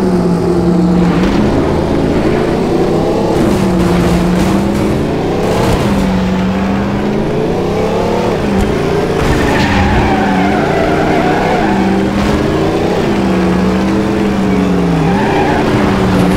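Tyres screech as a car skids through a turn.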